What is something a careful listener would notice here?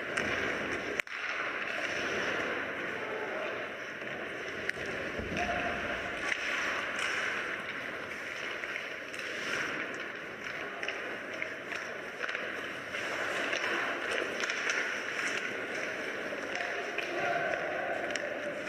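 Ice hockey skates scrape and carve across ice in a large echoing arena.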